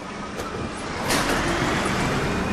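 Bus doors hiss and thump shut.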